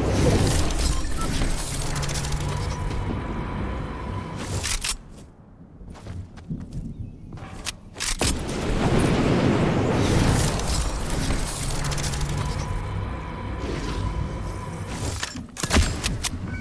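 Wind rushes loudly past while gliding.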